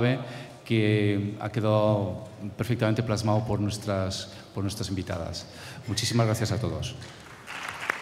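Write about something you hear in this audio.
A man speaks calmly through a microphone.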